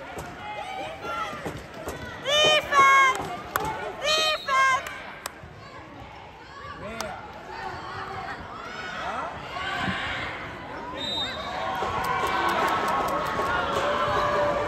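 Players and spectators call out and chatter, echoing in a large hall.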